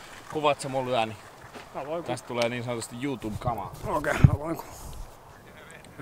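A young man talks calmly up close.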